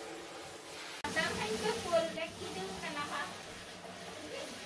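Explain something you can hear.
Water sprays from a shower head and splashes into a tub.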